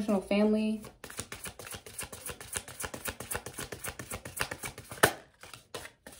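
Playing cards are shuffled with a quick, rapid riffling.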